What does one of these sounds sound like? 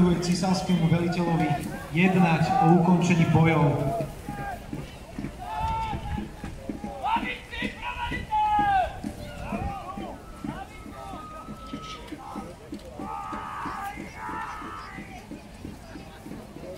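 A crowd of onlookers talks and calls out outdoors.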